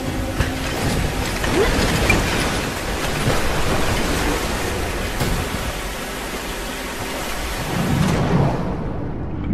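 Water rushes and roars loudly.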